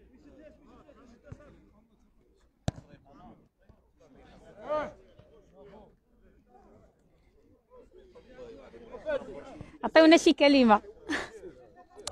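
A crowd of men talks outdoors nearby.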